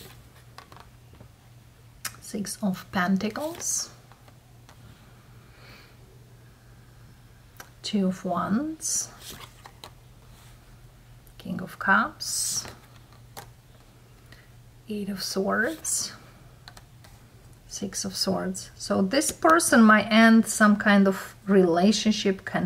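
Playing cards slide and tap softly onto a cloth surface.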